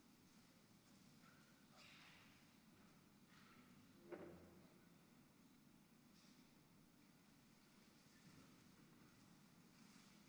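Footsteps shuffle softly across a stone floor in a large echoing hall.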